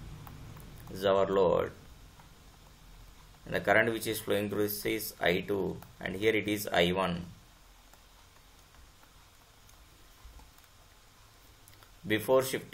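A man speaks calmly and explains, close to a microphone, with pauses.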